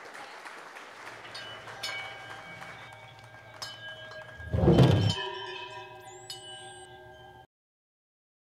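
An electric guitar strums a chord and rings out.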